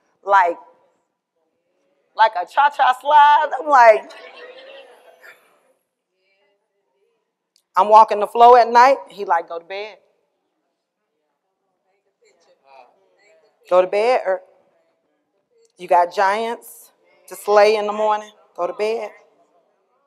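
A young woman speaks expressively in bursts, with pauses, in a hall with some echo.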